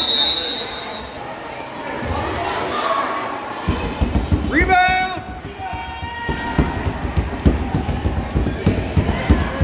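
Spectators and players chatter in the background.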